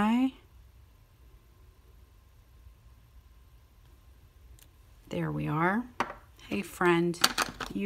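A small plastic block clicks as hands handle it.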